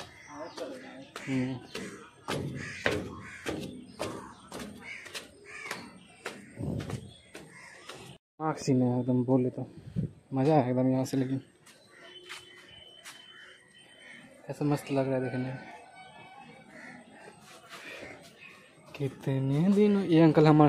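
Footsteps climb hard stairs.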